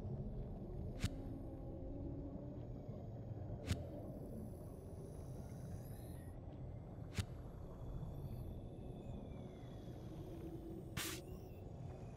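Menu clicks sound sharply now and then.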